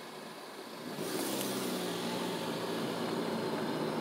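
A car engine revs up as the car pulls away.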